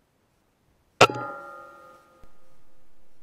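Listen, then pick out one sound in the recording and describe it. An air rifle fires a single sharp shot that rings briefly afterwards.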